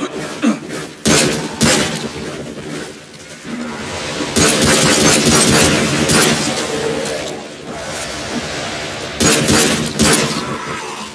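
Gunshots fire in loud, sharp bursts, echoing in an enclosed space.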